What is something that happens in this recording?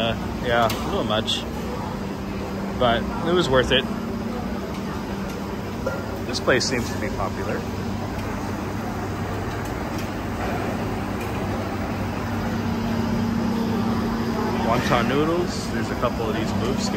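Voices of men and women talk nearby in short bursts.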